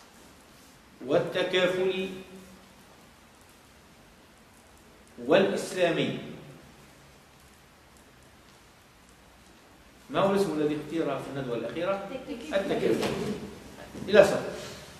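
A man speaks calmly, with pauses between phrases.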